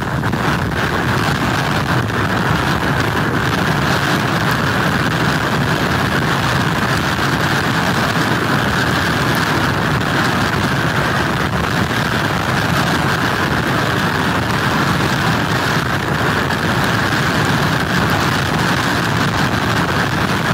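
Strong wind roars steadily outdoors.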